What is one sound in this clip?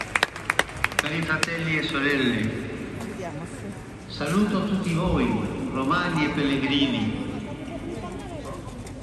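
A man speaks slowly through loudspeakers, echoing across a wide open space.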